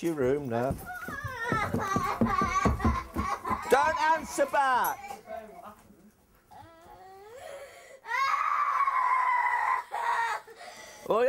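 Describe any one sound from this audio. A middle-aged woman sobs and wails loudly.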